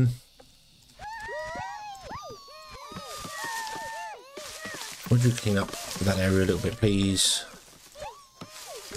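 Small creatures chirp and squeak in quick gliding cries.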